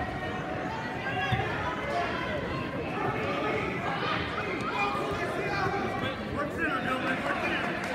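Spectators shout and cheer loudly.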